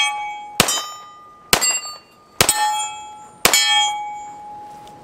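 Metal targets ring out after each shot.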